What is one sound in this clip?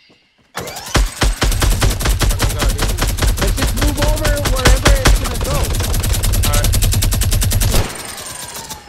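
Wooden pieces clatter rapidly into place in a video game.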